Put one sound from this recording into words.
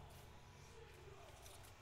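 A card pack crinkles and rustles as a hand handles it close by.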